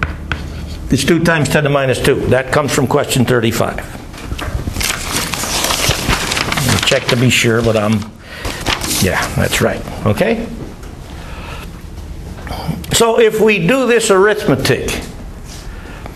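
An elderly man lectures aloud in an echoing room.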